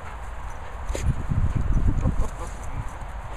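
A dog brushes against the microphone with a close, heavy rumbling.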